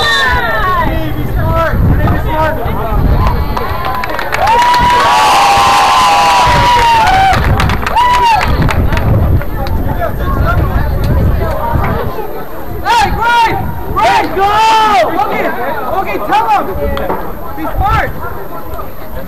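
Young men shout and call out on an open field outdoors.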